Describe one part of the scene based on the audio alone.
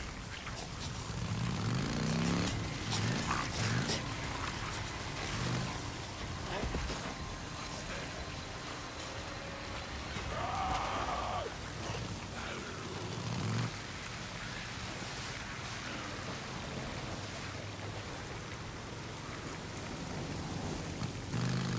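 A motorcycle engine revs as the bike rides off.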